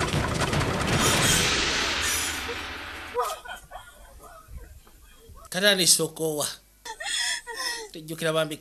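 A woman wails and cries out loudly.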